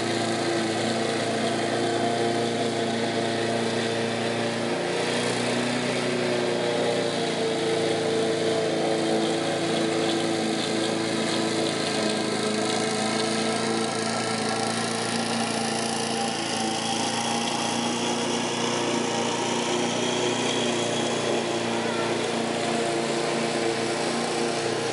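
A lawn mower engine drones steadily nearby.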